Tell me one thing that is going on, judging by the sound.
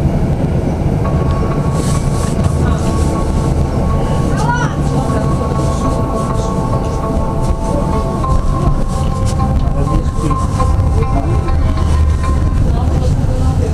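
An electric tram's motors whine.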